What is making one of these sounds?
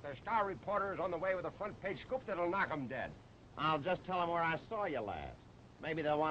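A man speaks loudly.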